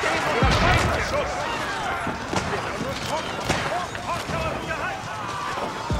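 Weapons clash and clang in a busy battle.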